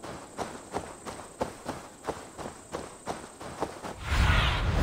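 Footsteps crunch steadily through tall grass.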